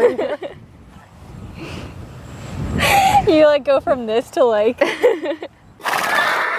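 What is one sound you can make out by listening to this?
Two young women laugh loudly together close by.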